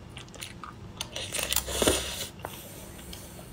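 A young woman slurps and chews food close to a microphone.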